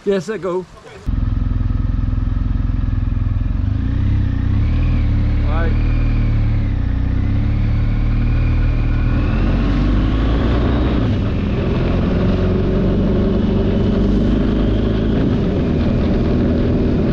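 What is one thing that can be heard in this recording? A motorcycle engine rumbles steadily close by as it rides.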